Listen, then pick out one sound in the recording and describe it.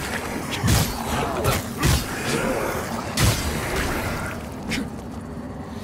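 Heavy blows strike with loud thuds and clashes.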